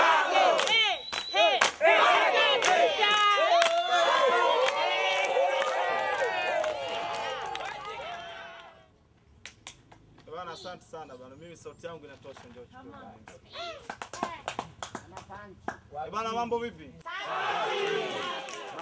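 A large crowd cheers and laughs loudly outdoors.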